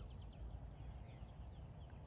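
A golf putter softly taps a ball.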